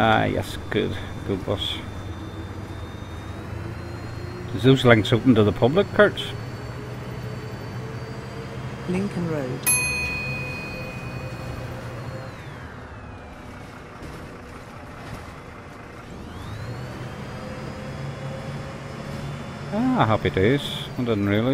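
A diesel city bus drives along, its engine note dropping and then rising again.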